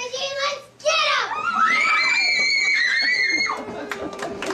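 Young girls sing in high voices in a large hall.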